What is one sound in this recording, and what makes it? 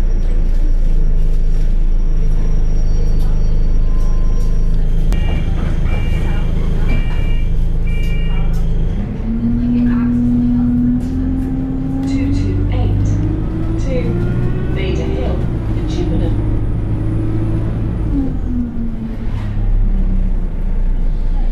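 A bus window rattles in its frame.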